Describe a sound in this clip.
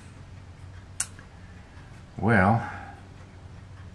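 A small part clicks as hands handle it.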